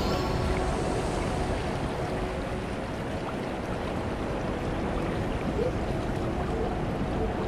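Water rumbles low and muffled all around.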